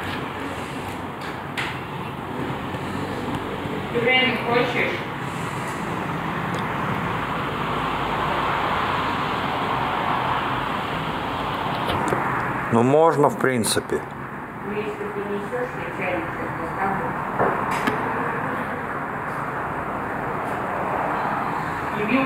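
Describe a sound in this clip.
Traffic hums across a city at night, heard from a distance.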